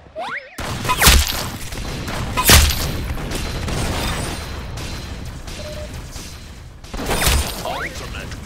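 Loud gunshots boom a few times.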